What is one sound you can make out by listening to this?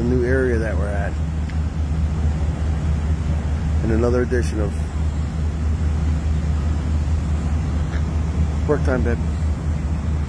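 A middle-aged man speaks briefly and calmly, close to the microphone.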